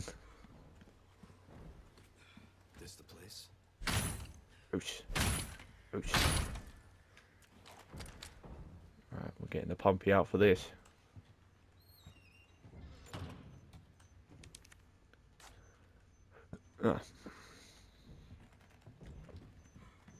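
Footsteps thud on a creaky wooden floor.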